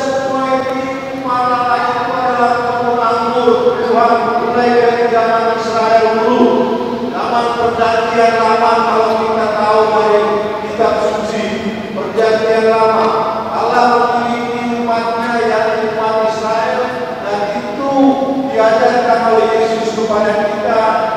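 A large crowd of men and women sings together in a large echoing hall.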